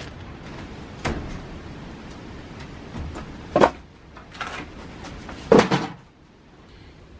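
Wood knocks and clatters as logs are handled.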